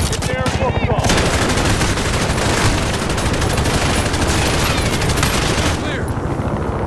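Rapid bursts of gunfire ring out close by.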